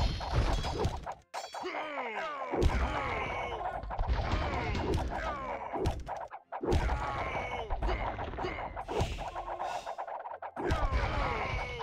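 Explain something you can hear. Swords clash and clang in a battle.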